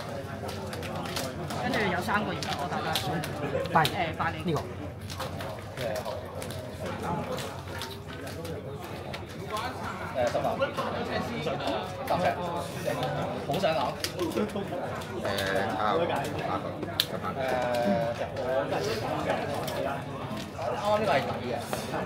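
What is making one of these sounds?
Cards in plastic sleeves are shuffled with soft clicking and rustling.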